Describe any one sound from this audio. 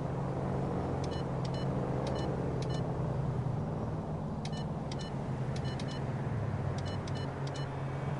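Short electronic beeps sound as keys are pressed.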